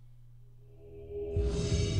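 A loud electronic chime sounds.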